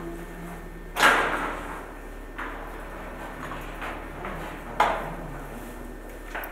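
A metal security gate clanks and rattles.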